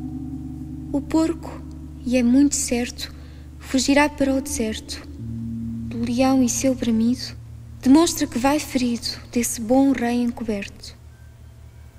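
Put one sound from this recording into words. A young woman sings softly and slowly.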